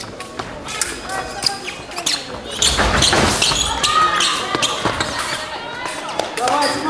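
Fencing blades clash and click sharply.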